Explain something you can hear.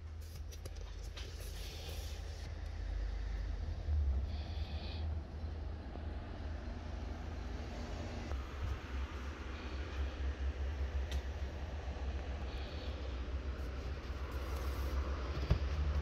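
A cardboard box slides and scrapes across a trunk mat.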